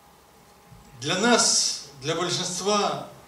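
A middle-aged man speaks animatedly into a microphone.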